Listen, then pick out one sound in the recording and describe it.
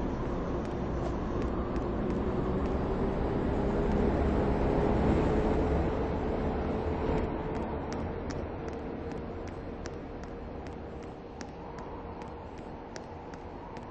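A train engine hums and rumbles steadily, growing louder and then slowly fading.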